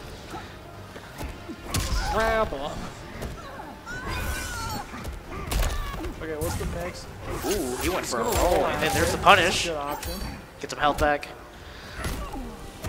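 Punches and kicks land with sharp, heavy thuds.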